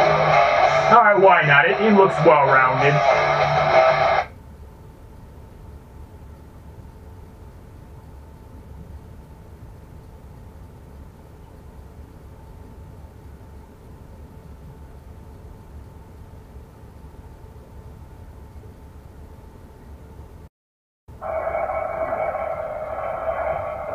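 Game music plays loudly.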